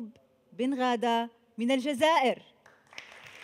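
A woman speaks with animation into a microphone, close by.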